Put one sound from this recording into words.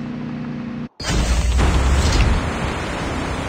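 An aircraft's rotors roar loudly.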